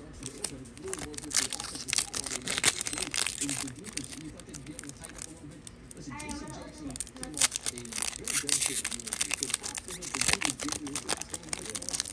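A foil wrapper crinkles and rustles as hands tear it open.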